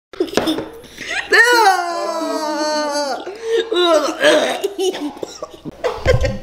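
A young woman groans and cries out loudly close by.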